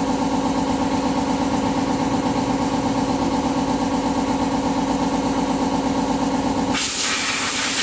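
A power tool whirs steadily.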